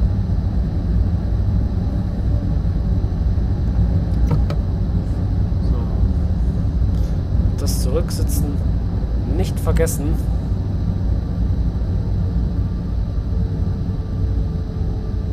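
A train rumbles steadily along the rails in a tunnel.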